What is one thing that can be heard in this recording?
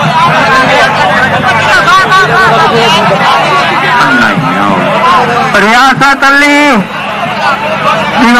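A crowd of men shouts and calls out outdoors.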